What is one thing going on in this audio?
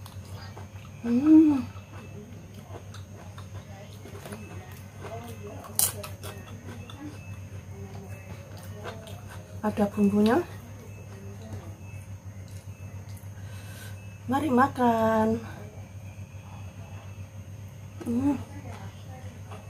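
A woman hums briefly with pleasure between bites, close by.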